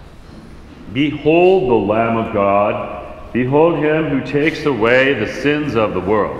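A man sings a chant loudly through a microphone, echoing in a large hall.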